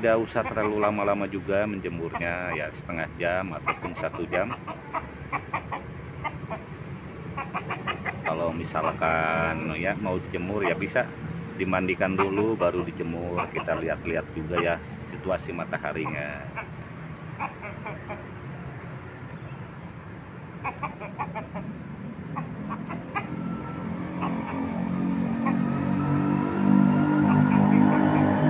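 Chickens cluck softly close by.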